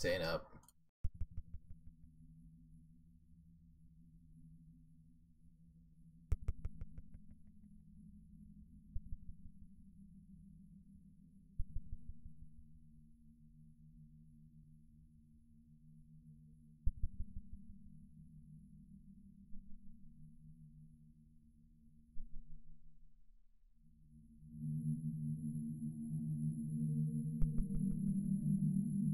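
A deep electronic bass plays long, repeated notes.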